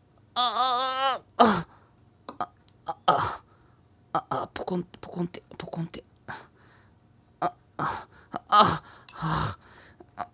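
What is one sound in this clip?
A spoon scrapes and squelches through soft jelly in a glass bowl.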